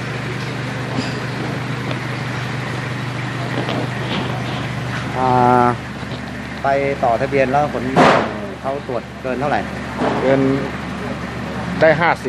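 Liquid glugs as it is poured from a bottle into a fuel tank.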